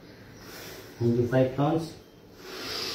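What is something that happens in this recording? A man speaks a few words briefly, close by.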